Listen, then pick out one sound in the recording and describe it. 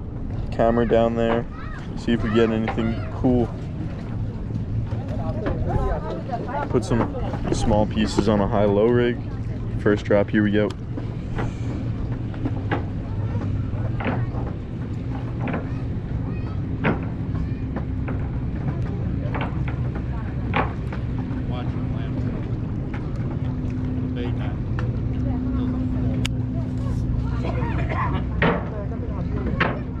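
Small waves lap and splash against a pier.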